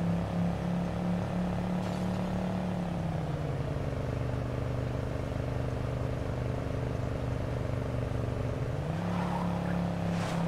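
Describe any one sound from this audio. A truck engine hums steadily, its pitch dropping and then rising again.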